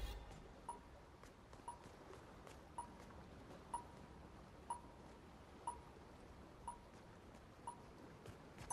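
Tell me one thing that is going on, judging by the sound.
A countdown timer beeps once every second.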